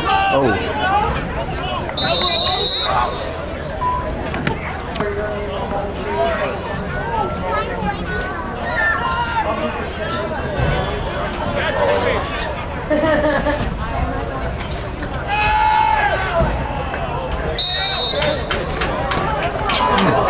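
Many young people talk and shout across an open field outdoors.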